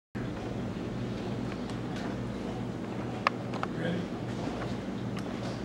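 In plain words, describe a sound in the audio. A piano plays softly.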